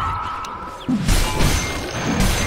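Weapons clash and magic bursts in a fight.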